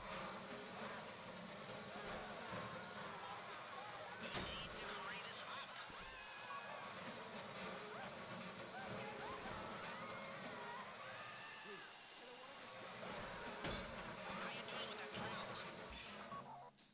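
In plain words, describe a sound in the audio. An electric drill whines steadily as it bores into metal.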